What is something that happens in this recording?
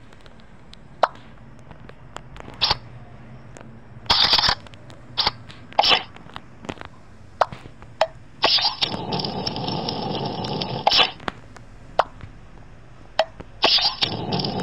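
Game cards snap and click as they are dealt and played.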